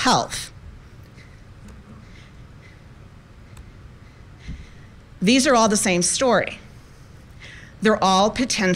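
A woman speaks calmly into a microphone, heard through a loudspeaker in a large room.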